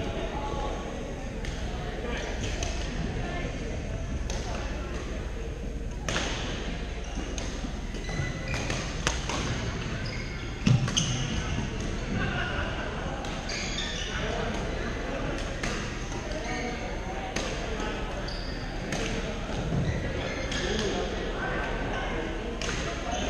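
Shuttlecocks pop off badminton rackets in a large echoing hall.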